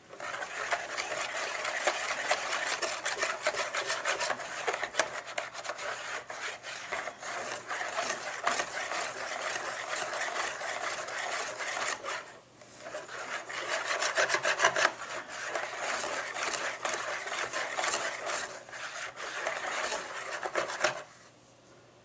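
A wire whisk beats batter rapidly against a metal bowl, clinking and sloshing.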